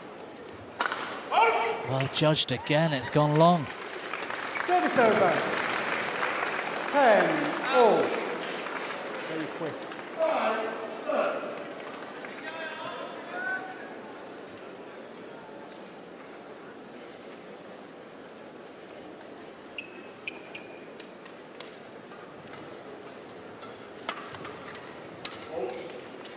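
Rackets strike a shuttlecock with sharp pops in a large hall.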